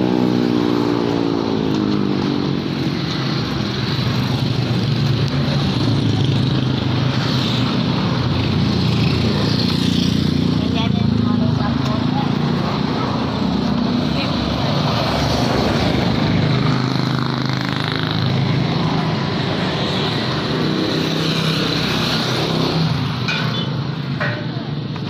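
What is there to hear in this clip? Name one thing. Footsteps scuff along a paved roadside.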